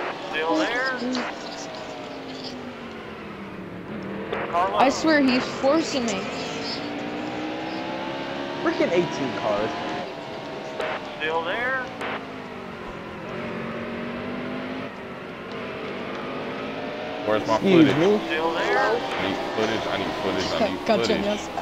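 A race car engine roars steadily, shifting pitch as the car speeds around the track.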